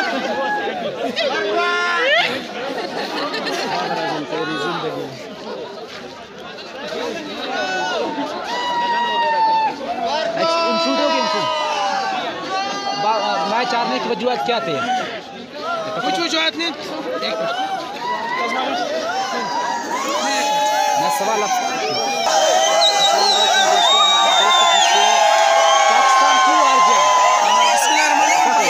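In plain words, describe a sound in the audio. A crowd of men shout and cheer loudly outdoors.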